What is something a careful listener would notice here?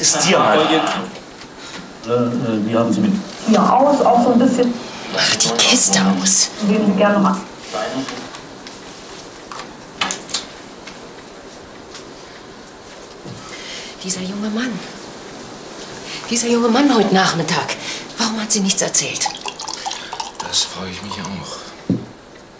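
An elderly woman speaks nearby with feeling.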